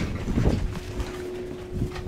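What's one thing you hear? Footsteps of a man walk along a quiet street.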